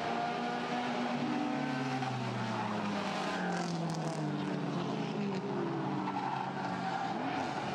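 A car engine revs up and down in pitch.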